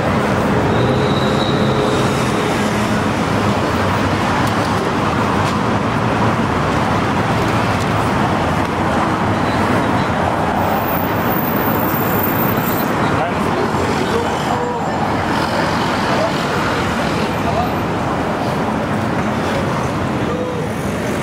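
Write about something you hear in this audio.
Footsteps of passers-by tap on paving stones.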